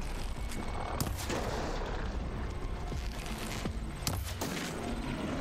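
Sharp bangs burst out a few times.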